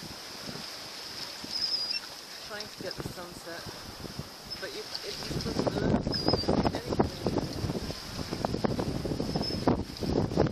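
Waves wash and splash against a boat's hull.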